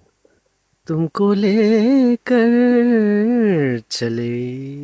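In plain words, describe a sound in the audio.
A young man sings into a microphone over an online call.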